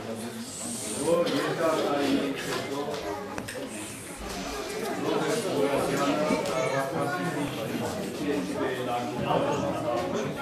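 Women and children in a seated crowd murmur and chatter nearby.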